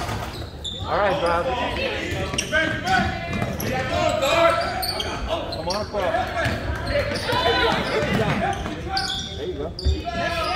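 Young players and spectators shout and call out in a large echoing hall.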